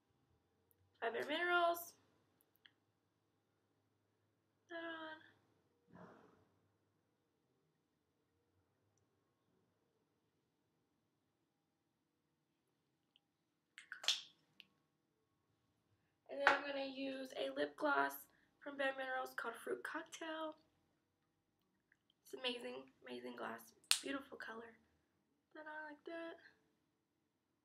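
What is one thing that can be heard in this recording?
A young woman talks calmly and close to the microphone, in short bursts with pauses.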